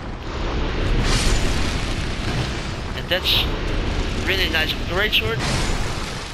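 A sword swings and slashes with a heavy whoosh.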